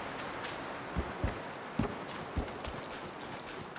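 Footsteps thud heavily on dry dirt.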